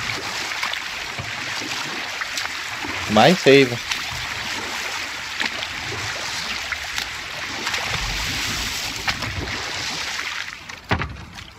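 Water splashes and laps against a small rowing boat.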